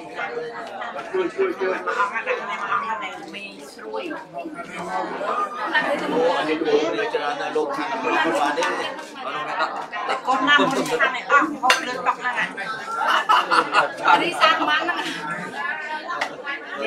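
Several adults talk and murmur nearby.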